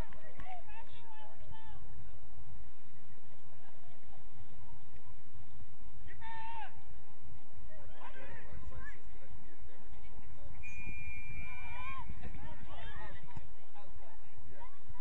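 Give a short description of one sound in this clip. Young women on a sports field shout to one another from a distance.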